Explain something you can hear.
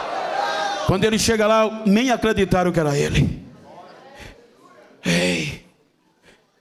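An elderly man speaks forcefully through a microphone in a large echoing hall.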